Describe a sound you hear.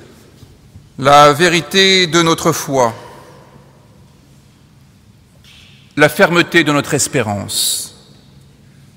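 A man chants short phrases through a loudspeaker in a large echoing hall.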